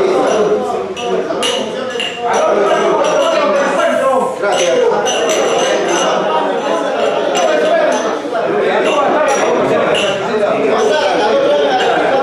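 Glasses clink together in a toast.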